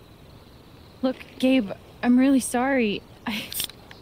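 A young woman speaks softly and apologetically, close by.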